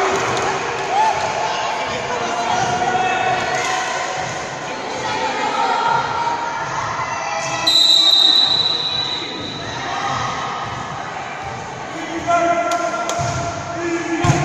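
Young girls chatter and call out in a large echoing hall.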